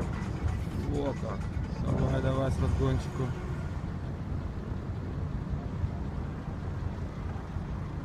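A car engine rumbles nearby.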